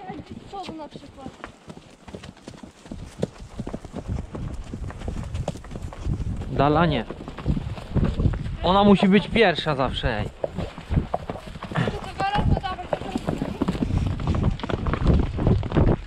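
Horse hooves thud steadily on a sandy track.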